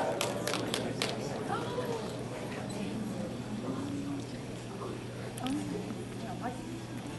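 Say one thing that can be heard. An audience murmurs and chatters nearby in a large hall.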